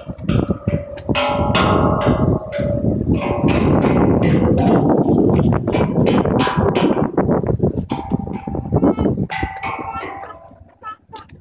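A child taps a metal drum with a mallet, making ringing tones.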